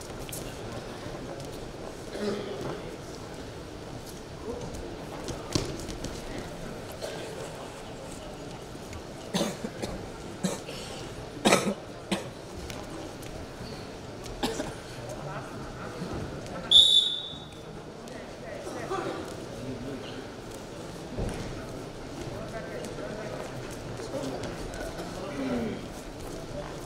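Wrestlers' feet thump and slap on a mat.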